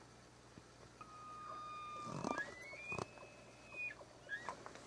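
An elk bugles again in a long high call.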